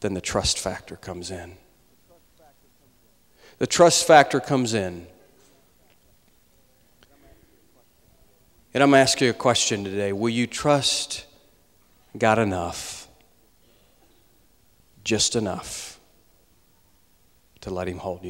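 A man speaks with animation through a microphone in a large echoing hall, pausing between phrases.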